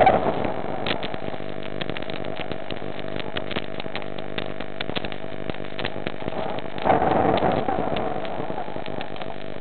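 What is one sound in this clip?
Air bubbles gurgle and pop close by underwater.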